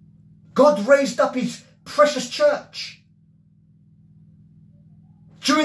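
A middle-aged man speaks with animation, close to a microphone.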